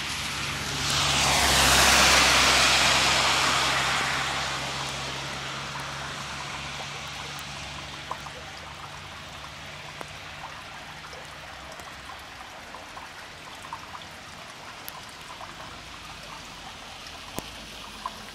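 A vehicle engine hums low and steady.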